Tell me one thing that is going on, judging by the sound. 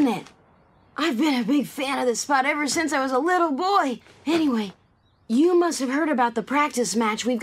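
A boy talks cheerfully up close.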